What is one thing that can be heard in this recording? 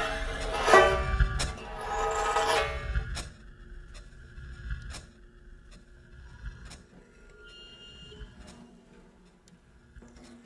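Banjo strings are struck with a thin stick, ringing out in bright, twangy notes.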